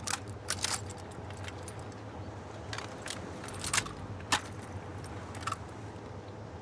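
A drum magazine clicks and clatters into a rifle during a reload.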